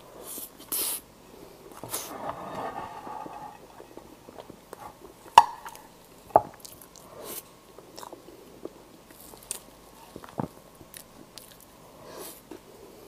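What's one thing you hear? A young woman chews food wetly and smacks her lips close to a microphone.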